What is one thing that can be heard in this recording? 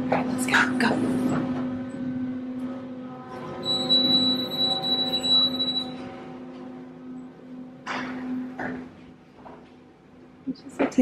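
An elevator hums steadily and then falls quiet.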